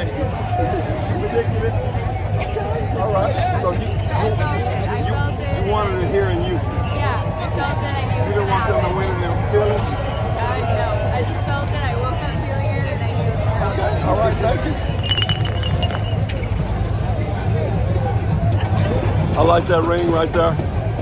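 A crowd chatters outdoors.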